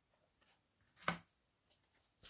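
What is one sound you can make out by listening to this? A card is set down with a soft tap.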